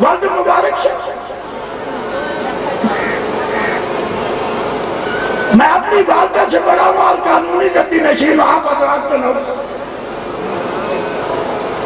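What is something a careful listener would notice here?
An elderly man speaks with animation through a loudspeaker, outdoors.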